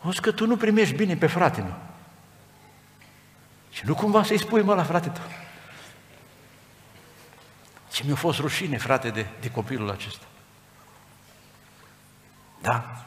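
A middle-aged man speaks calmly into a headset microphone in an echoing hall, with pauses between phrases.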